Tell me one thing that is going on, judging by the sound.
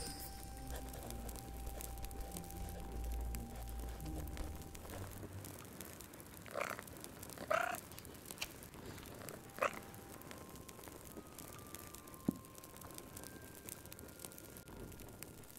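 A fire crackles and pops in a fireplace.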